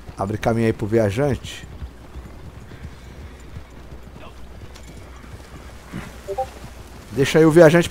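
Horses' hooves thud on dirt at a trot.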